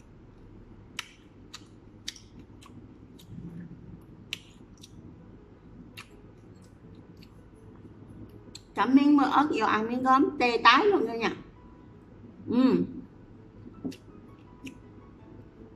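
Crisp food crunches and crackles as a young woman chews.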